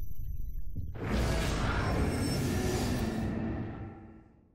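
A wet, squelching burst sounds and slowly fades.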